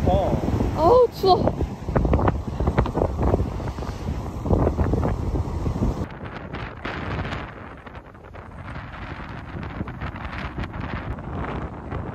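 Strong wind buffets and roars outdoors.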